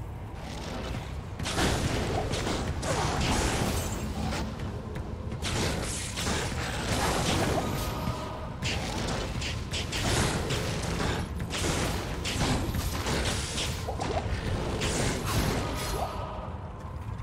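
Crackling spell blasts and fighting noises burst repeatedly.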